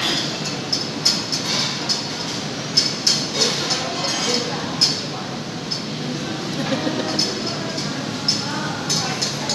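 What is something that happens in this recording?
Metal utensils clatter and clink against pots and dishes.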